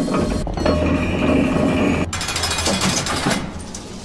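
A metal gate clanks open.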